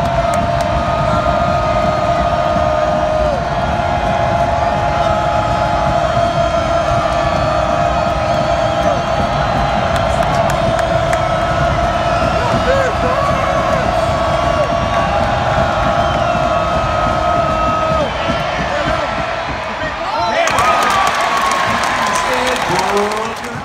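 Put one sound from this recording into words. A large stadium crowd murmurs and chants steadily outdoors.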